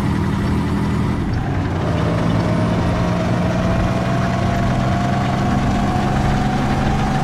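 A tank engine hums steadily and rumbles as the tank drives.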